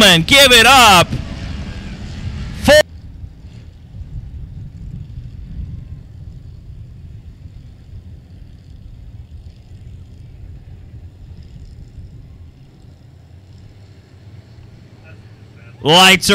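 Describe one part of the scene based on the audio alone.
Race car engines rumble low, some distance away.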